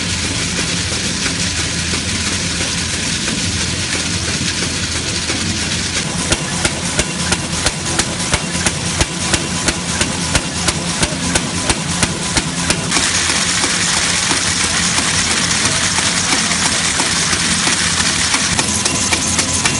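A printing machine whirs and rumbles steadily.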